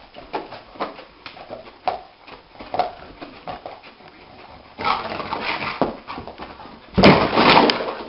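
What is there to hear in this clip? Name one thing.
A dog's paws scrabble and thump on a carpeted floor.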